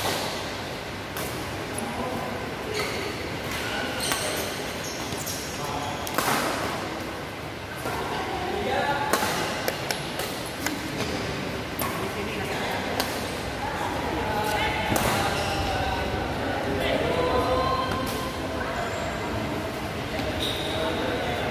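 Rackets hit a shuttlecock with sharp pops.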